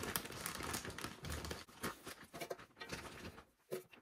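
Dry granules patter into a pan.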